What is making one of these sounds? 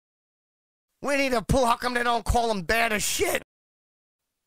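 A man sings in an exaggerated, wailing voice close to the microphone.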